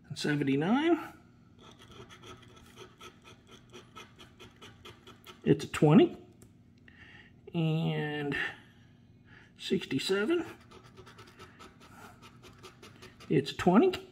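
A coin scrapes rapidly across a scratch card.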